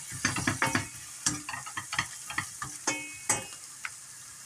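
A spoon scrapes and clinks against a metal pan.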